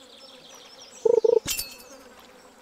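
A loud alert chimes as a fish bites.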